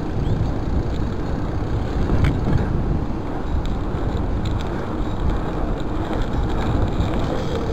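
Bicycle tyres roll on asphalt.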